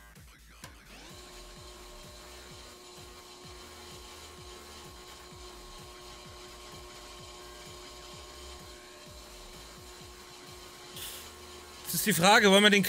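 A brake lathe motor hums steadily while its cutter grinds a spinning disc.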